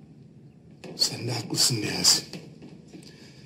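A middle-aged man speaks firmly close by.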